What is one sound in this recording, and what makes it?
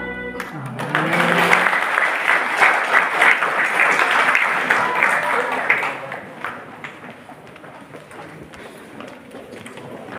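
A crowd of young men and women chatters loudly in an echoing hall, then quiets down.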